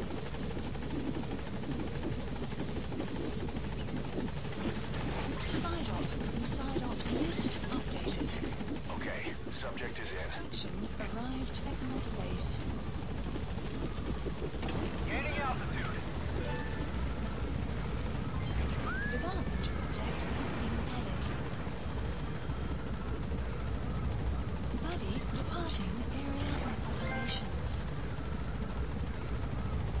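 A helicopter's engine and rotor drone steadily and loudly.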